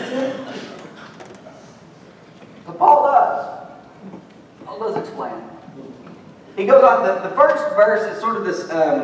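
A man speaks to an audience with pauses, heard through a microphone in a large echoing hall.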